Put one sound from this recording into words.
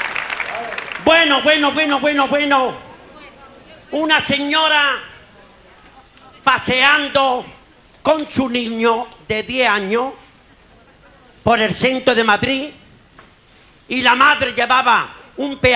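A man sings loudly into a microphone in phrases, with pauses between them.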